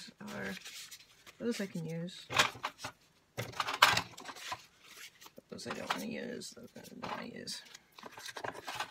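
Dry paper rustles and crinkles as it is handled.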